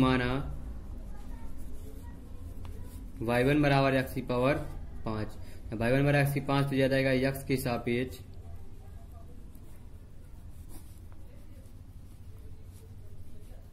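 A pen scratches on paper as it writes.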